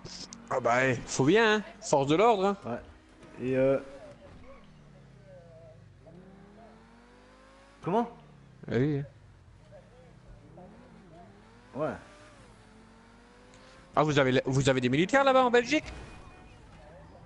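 A sports car engine hums and revs as it drives.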